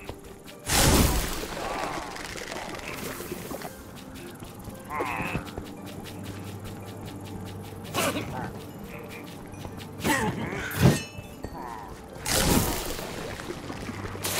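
Fireworks burst with loud bangs and crackles.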